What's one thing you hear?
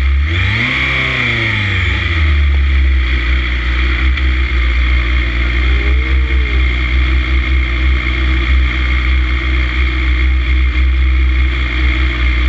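A motorcycle engine roars loudly up close at high revs.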